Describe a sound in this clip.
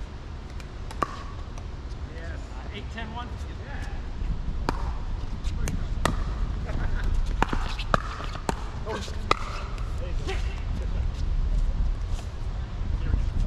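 Paddles pop against plastic balls in sharp, hollow knocks.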